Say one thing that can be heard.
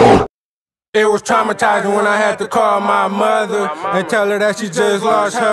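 A young man raps close to a microphone.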